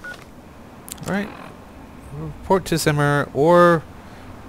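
An electronic device bleeps and chirps in short pitched bursts.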